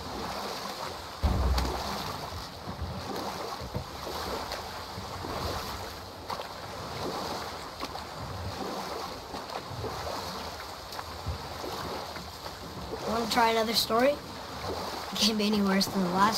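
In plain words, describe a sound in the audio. Water splashes and churns around a rowed boat.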